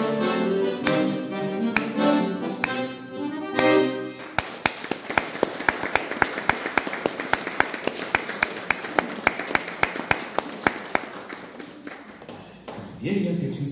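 An accordion plays a lively tune close by.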